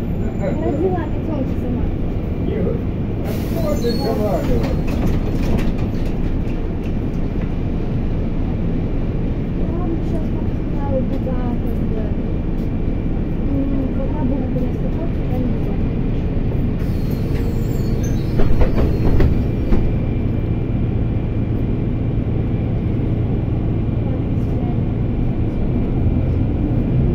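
A vehicle engine hums steadily and low.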